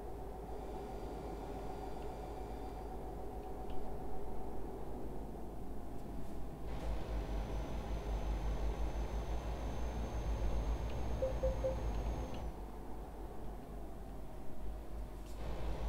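A truck engine hums steadily at low speed.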